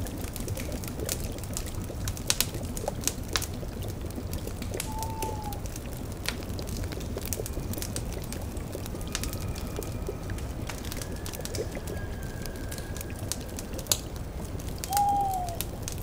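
A pot bubbles and gurgles.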